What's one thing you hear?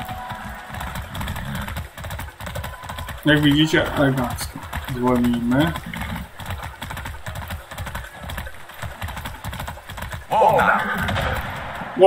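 Horse hooves clop steadily on a road.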